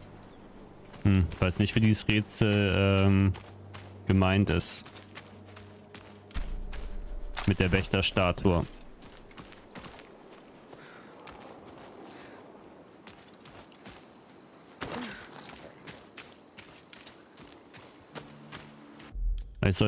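Footsteps tread on dirt and grass.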